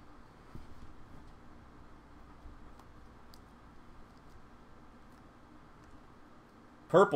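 Trading cards flick and slide softly against each other in a hand.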